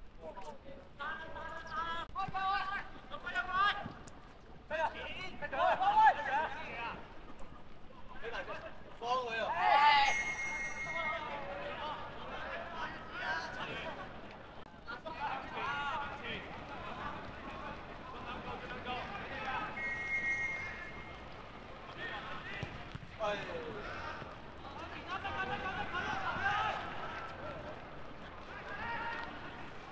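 Young men shout and call out across an open outdoor field.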